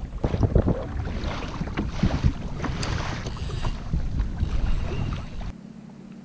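Waves splash and slap against a small boat's hull.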